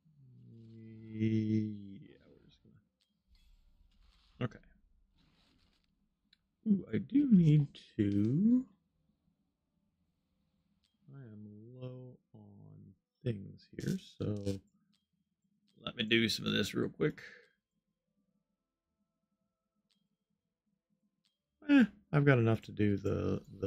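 A man talks into a close microphone in bursts, calmly and with animation.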